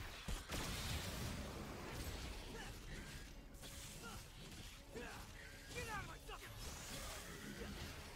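Swords clash and slash in a fast fight.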